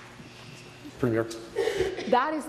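An older man speaks firmly into a microphone in a large hall.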